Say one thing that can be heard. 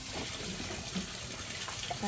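A ladle scrapes and stirs in a metal pot.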